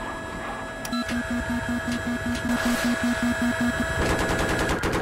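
An electronic warning tone beeps rapidly.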